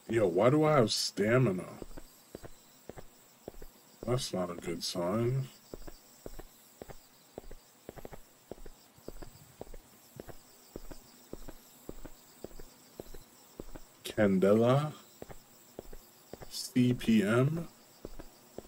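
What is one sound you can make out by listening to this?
A man talks in short bursts into a close microphone.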